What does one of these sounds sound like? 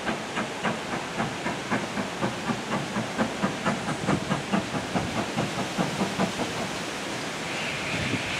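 Train carriages roll past with rhythmic clicking of wheels over rail joints.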